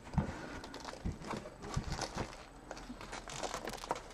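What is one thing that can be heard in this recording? Cardboard boxes knock and slide against each other close by.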